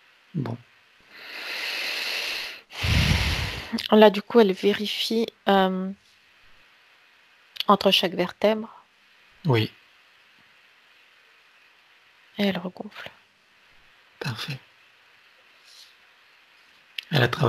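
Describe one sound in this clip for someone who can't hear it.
A middle-aged man speaks warmly over an online call.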